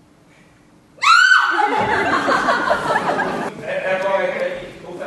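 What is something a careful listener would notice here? A young woman laughs out loud nearby.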